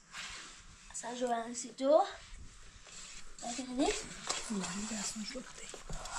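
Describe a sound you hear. Children talk quietly nearby.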